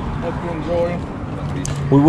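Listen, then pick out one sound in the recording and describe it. A plastic bag rustles as it is handled close by.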